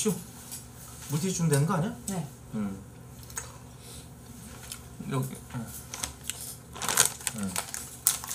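A young woman talks casually, close to a microphone.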